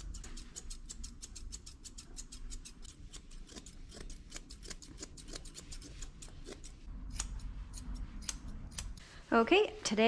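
Scissors snip quickly and steadily through thick fur.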